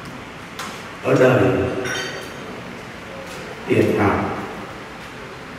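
A middle-aged man speaks calmly into a microphone, heard through a loudspeaker in an echoing room.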